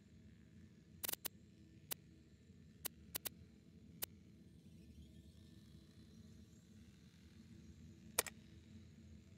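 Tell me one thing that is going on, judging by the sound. Short menu clicks tick now and then as a selection moves through a list.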